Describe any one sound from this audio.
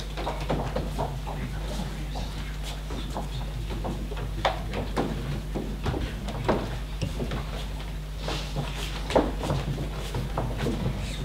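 Several men and women talk and call out at a distance in a large echoing hall.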